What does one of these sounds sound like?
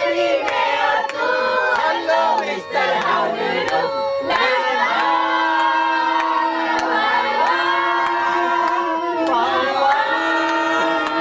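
Young women sing together loudly into a microphone, heard through loudspeakers.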